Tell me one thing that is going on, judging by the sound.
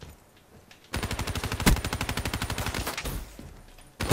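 A rapid burst of automatic gunfire rattles.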